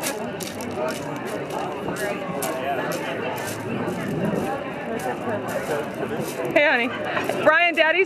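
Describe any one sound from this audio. Pebbles crunch underfoot.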